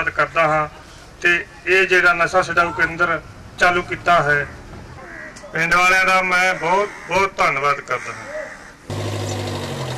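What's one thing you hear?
An elderly man speaks with animation into a microphone, amplified over loudspeakers outdoors.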